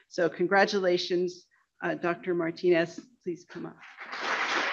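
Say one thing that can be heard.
A woman speaks through a microphone in a large hall, announcing calmly.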